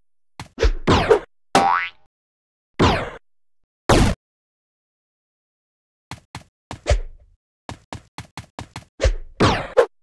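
Short game sound effects pop and whoosh in quick bursts.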